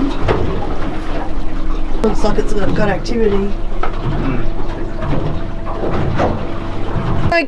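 Water splashes against a boat's hull.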